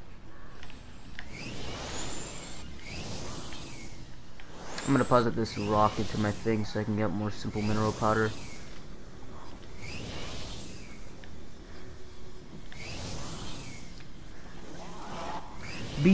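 A hoverboard whooshes along in repeated surges.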